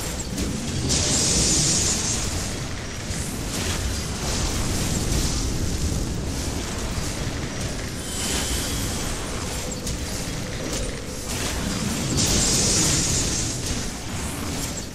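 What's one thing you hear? Magic spells whoosh and burst in bursts of hissing noise.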